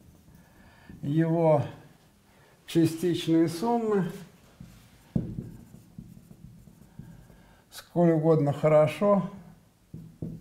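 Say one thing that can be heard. An elderly man speaks calmly in short bursts, with pauses.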